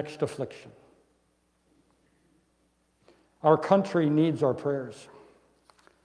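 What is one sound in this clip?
A man speaks slowly through a microphone in an echoing hall, with long pauses.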